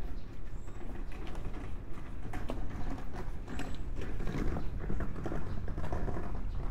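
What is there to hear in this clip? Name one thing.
A hand cart rattles as its wheels roll over the pavement.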